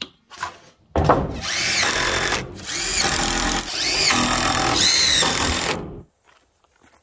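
A cordless drill whirs, driving screws into wood.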